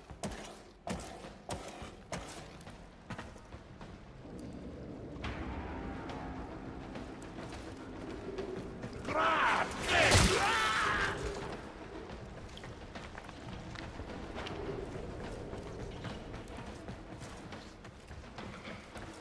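Footsteps clatter quickly on a metal floor.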